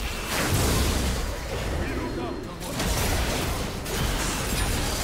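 Magic spells whoosh and crackle in a busy fight.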